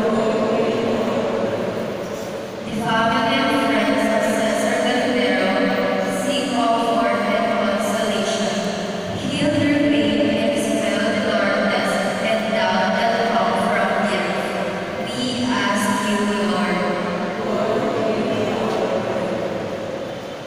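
A young woman sings into a microphone, heard through loudspeakers in a large echoing hall.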